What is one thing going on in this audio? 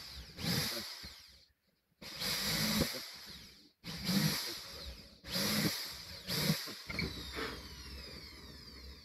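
A cordless drill whirs in short bursts, driving screws into wood.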